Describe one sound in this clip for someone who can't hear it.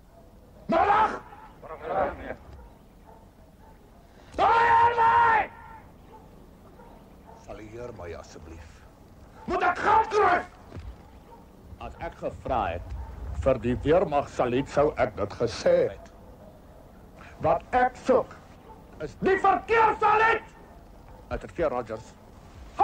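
A man speaks loudly and firmly nearby, in bursts.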